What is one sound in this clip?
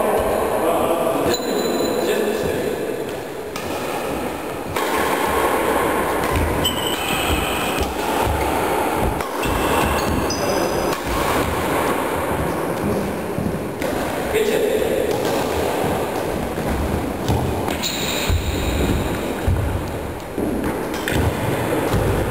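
Sneakers squeak and thud on a wooden floor.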